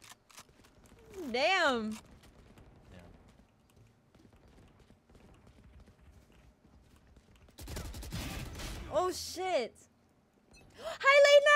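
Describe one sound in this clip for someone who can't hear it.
A young woman exclaims loudly into a close microphone.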